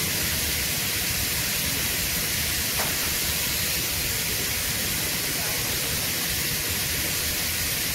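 A welding torch hisses and crackles steadily.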